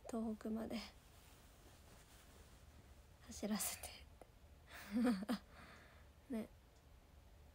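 A young woman talks calmly and close by, in short bursts with pauses.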